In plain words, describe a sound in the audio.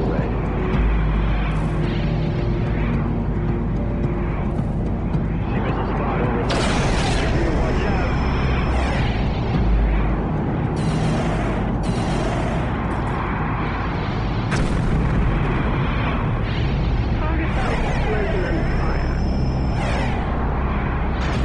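Laser weapons fire in sharp bursts.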